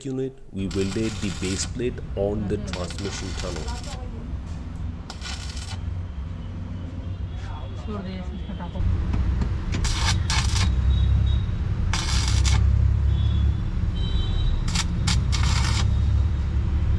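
An electric welder crackles and sizzles in short bursts.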